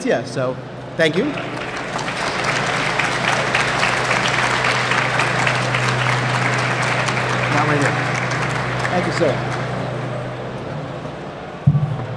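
Hands clap in steady applause.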